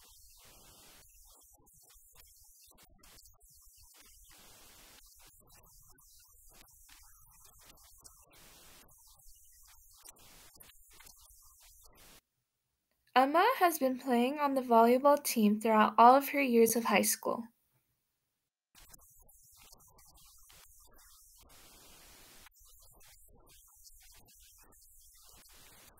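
A young woman speaks calmly into a microphone close by.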